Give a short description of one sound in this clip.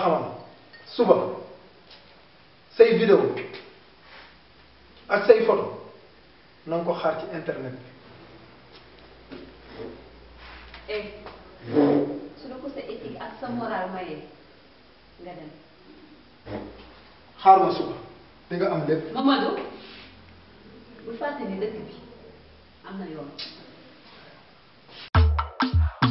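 A young woman talks back sharply, close by.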